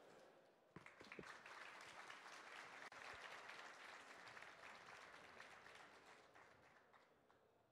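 An audience applauds in a large hall, then the clapping fades.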